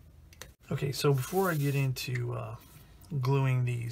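A small plastic model is handled and set down on a table with a light tap.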